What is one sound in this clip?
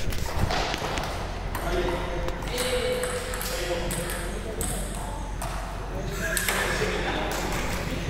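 Table tennis balls click against paddles and tables.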